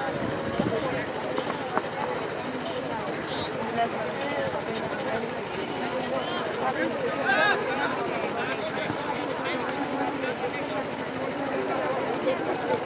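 A large crowd of spectators chatters and calls out outdoors.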